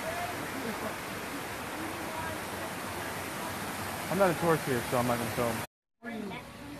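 A waterfall splashes steadily in the distance.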